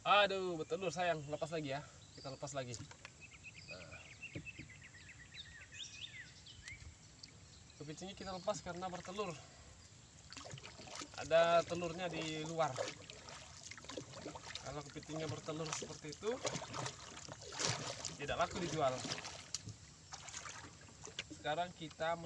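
A wooden paddle splashes through water.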